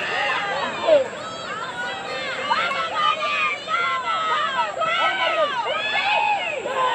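A crowd cheers from the stands outdoors.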